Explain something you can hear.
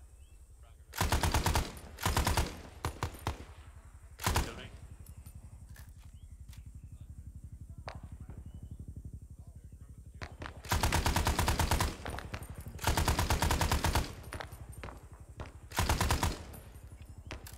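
A rifle fires loud, rapid bursts close by.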